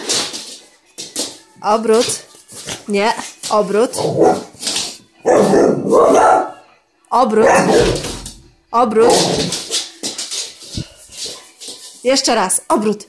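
A dog barks excitedly, close by.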